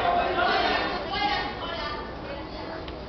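A man sings into a microphone on stage, heard through loudspeakers in a large hall.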